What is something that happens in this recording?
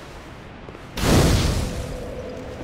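A fire ignites with a loud whoosh.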